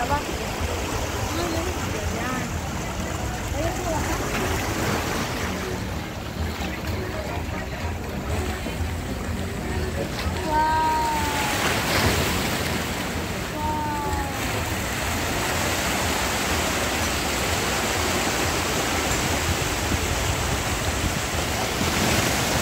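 Water laps and splashes gently.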